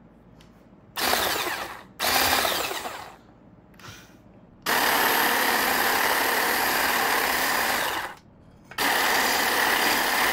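An electric hand mixer whirs loudly in bursts, beating a thick mixture.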